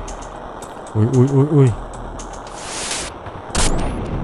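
Electronic game sound effects chime and buzz.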